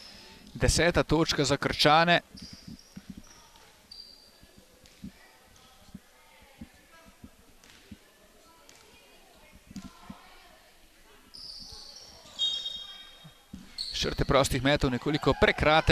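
Young players shout loudly.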